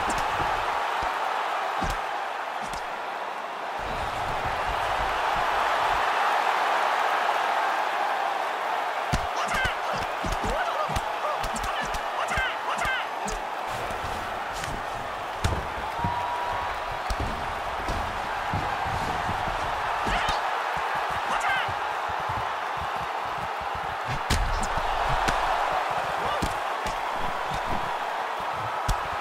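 Punches thud against bodies in quick bursts.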